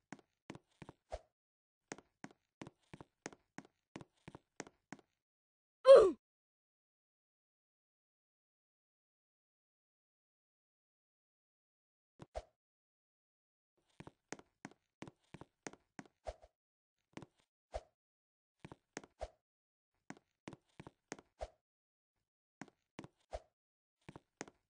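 Quick, light footsteps patter along a hard path.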